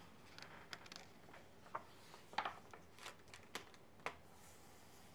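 A book page turns with a soft papery rustle.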